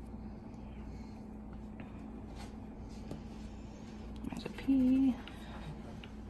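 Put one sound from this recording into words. A coin scratches across a card.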